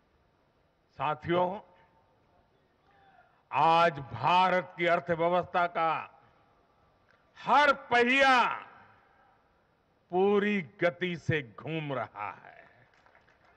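An elderly man speaks forcefully into a microphone, heard through loudspeakers, in short bursts with pauses.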